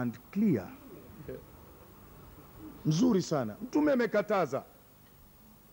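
An elderly man speaks forcefully into a microphone, heard through a loudspeaker.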